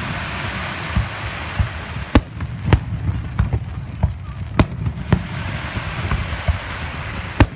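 Fireworks burst with loud, sharp bangs.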